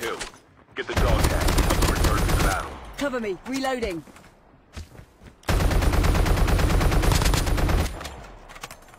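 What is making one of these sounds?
An automatic rifle fires rapid bursts in a video game.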